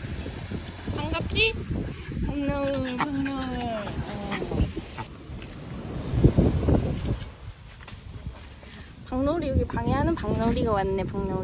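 A young woman talks nearby in a high, playful voice.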